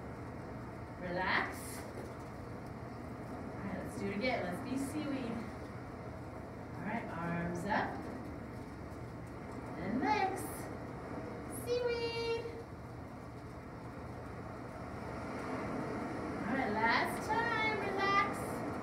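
A woman gives calm instructions in a slightly echoing room.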